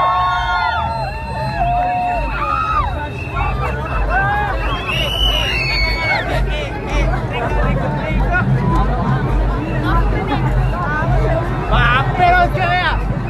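A large crowd of men and women chatters and cheers loudly outdoors.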